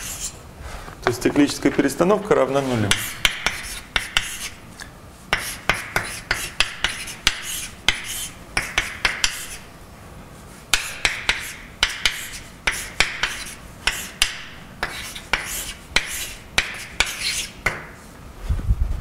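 Chalk taps and scratches on a blackboard in quick strokes.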